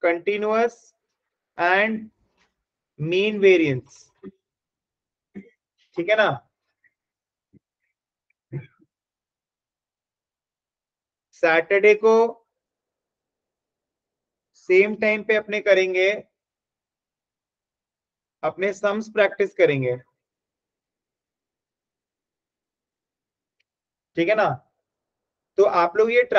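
A man speaks calmly in short phrases over an online call, with pauses between them.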